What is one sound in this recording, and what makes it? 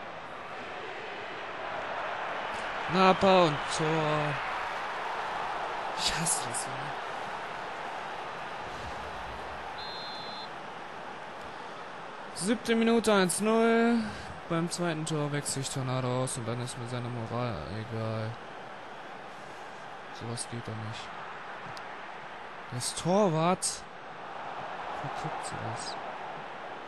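A stadium crowd roars steadily, swelling for a while and then settling.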